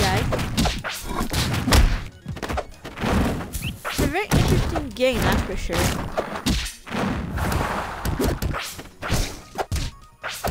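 Punches, slashes and hit effects from a video game fight crackle in quick bursts.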